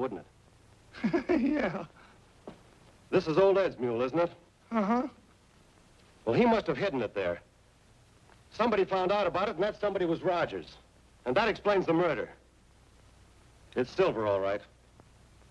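An older man speaks calmly in a low voice.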